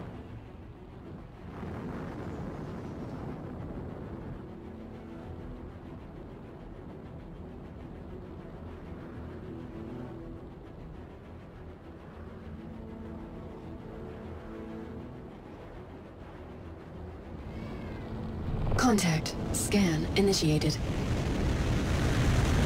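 A spacecraft's engines hum with a low, steady drone.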